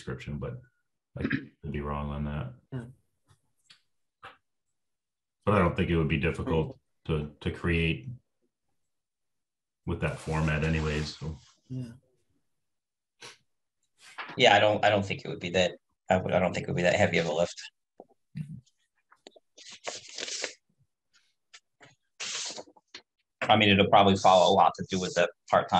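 Middle-aged men talk calmly over an online call.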